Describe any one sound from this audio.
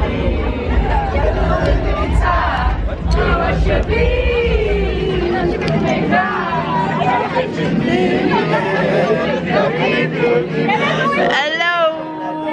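Young women sing and shout excitedly close by.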